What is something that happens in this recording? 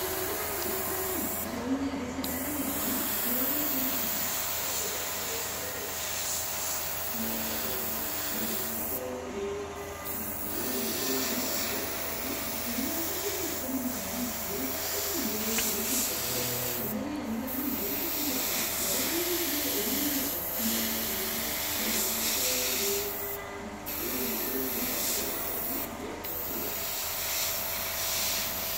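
An airbrush hisses as it sprays in short bursts.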